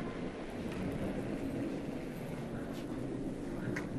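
A curling stone rumbles as it slides across the ice.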